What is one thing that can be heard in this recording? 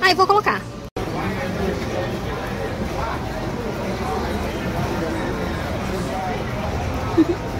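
Shoppers murmur in the background of a busy indoor space.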